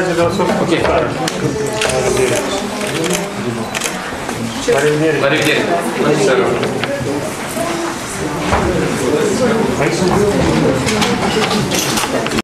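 Several men and women talk over one another in a crowded room.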